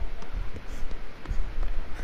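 Footsteps run over a hard floor.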